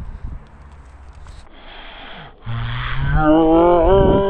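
A young boy speaks with animation close by.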